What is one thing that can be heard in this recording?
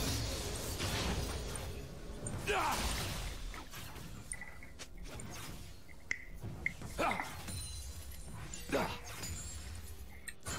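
Spell effects whoosh and zap in a video game battle.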